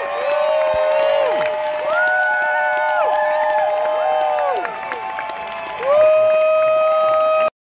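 A large crowd cheers and screams loudly nearby.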